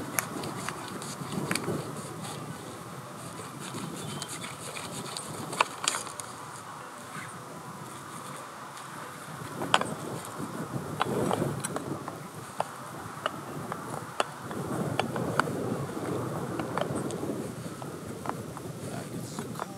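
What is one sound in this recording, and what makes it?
Plastic pipe fittings click and knock.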